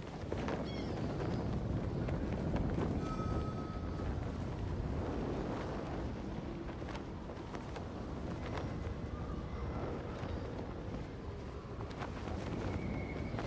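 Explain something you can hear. Wind rushes steadily past.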